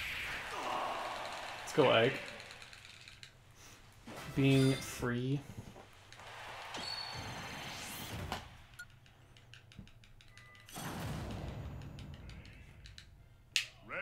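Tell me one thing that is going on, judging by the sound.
Video game sound effects and music play.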